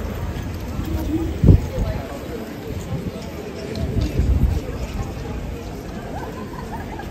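A crowd of people murmurs in the distance.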